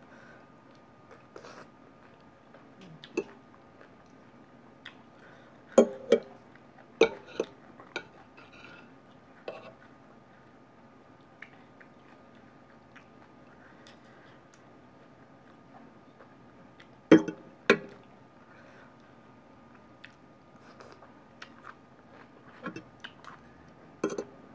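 Metal cutlery clinks and scrapes against a plate.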